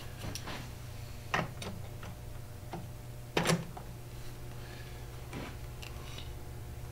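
Metal parts clink and clatter as they are handled.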